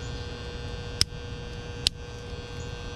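Small metal parts click together.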